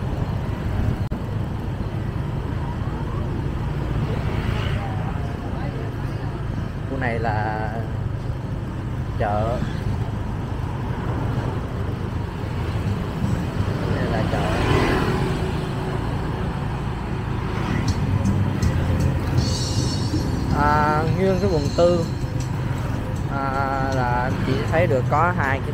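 A motorbike engine hums steadily at close range.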